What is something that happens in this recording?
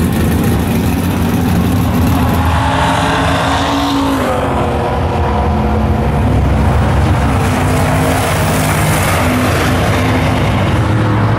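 A truck's engine roars loudly as it speeds away, rising in pitch and dropping with each gear change.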